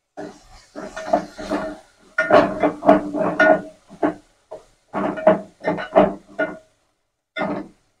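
A spoon scrapes and stirs in a metal pot.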